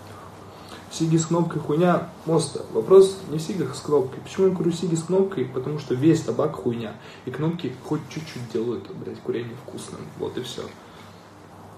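A young man talks with animation close to a phone's microphone.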